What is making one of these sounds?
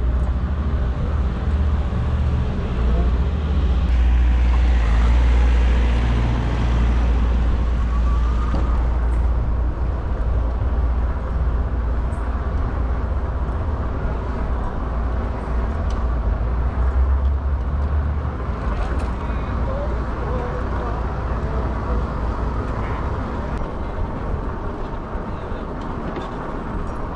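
Tyres hum on a smooth road.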